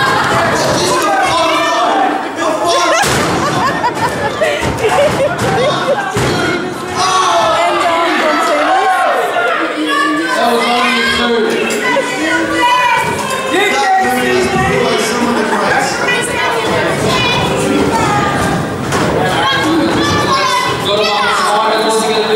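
A small crowd shouts and cheers in an echoing hall.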